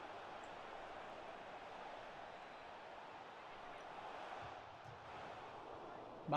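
A stadium crowd roars steadily.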